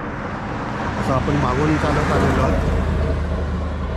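An older man speaks calmly, close to the microphone.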